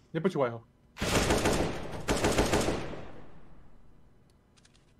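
A rifle fires in rapid bursts that echo and fade.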